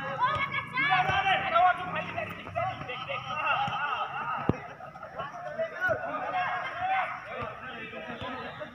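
Boys shout to each other outdoors in the distance.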